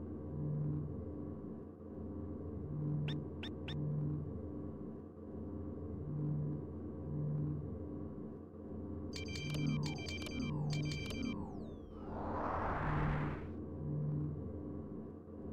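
A spaceship engine hums low and steady, with a slow pulsing throb.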